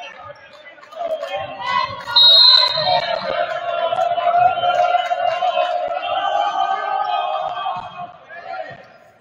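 A crowd cheers and shouts from the stands.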